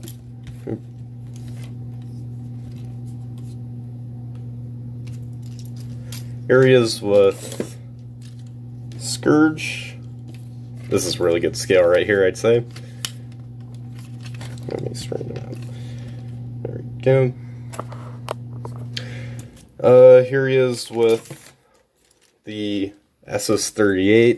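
Plastic toy figures click and rattle as hands move them.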